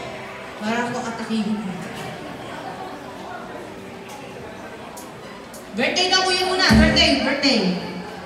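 A crowd chatters quietly in the background.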